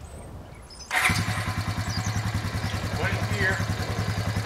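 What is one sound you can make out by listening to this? A small engine starts and idles with a steady rattle nearby.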